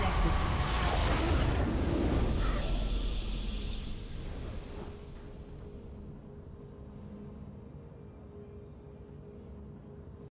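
A triumphant game fanfare swells loudly, then slowly fades away.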